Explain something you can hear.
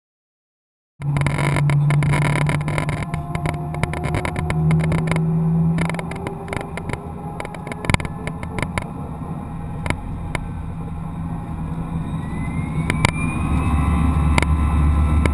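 Jet engines roar steadily as an airliner speeds down a runway.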